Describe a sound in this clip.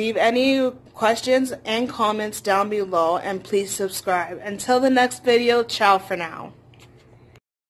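A young woman talks close to a phone microphone with animation.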